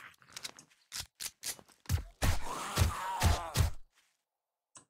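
A gun fires several loud shots.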